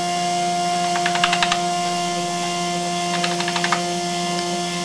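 Gears and a chain click and rattle in quick bursts.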